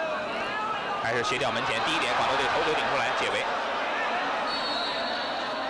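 A sparse crowd murmurs and calls out in an open stadium.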